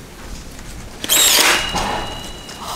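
A nail gun fires with a sharp bang.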